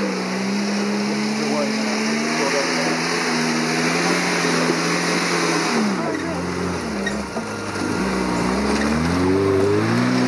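Tyres scrabble over mud and loose stones.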